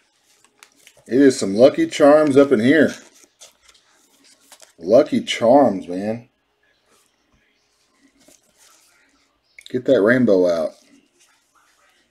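A plastic card sleeve rustles and slides in gloved hands.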